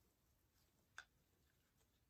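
A cup is set down on a table with a knock.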